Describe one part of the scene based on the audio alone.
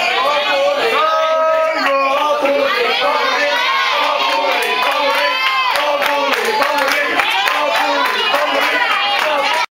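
A group of young men and women sing and cheer loudly nearby.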